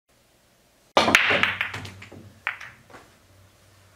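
Pool balls break and clatter loudly across a table.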